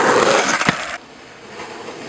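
Skateboard wheels roll roughly over pavement.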